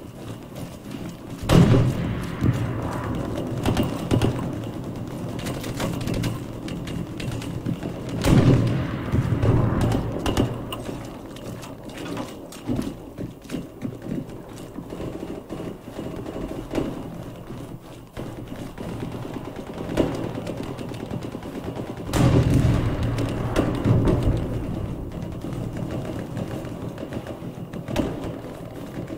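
Footsteps crunch through snow at a running pace.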